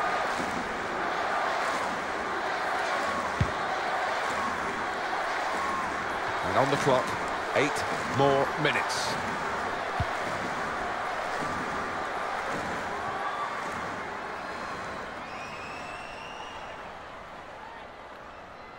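A large stadium crowd roars steadily, then slowly fades.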